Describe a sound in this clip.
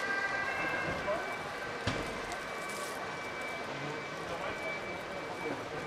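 Hands rustle through leafy plants and crumble soil.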